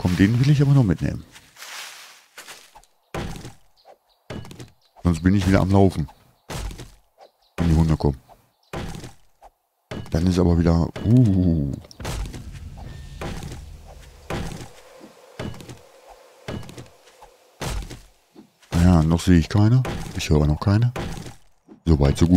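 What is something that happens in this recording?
An axe chops into a tree trunk with repeated dull thuds.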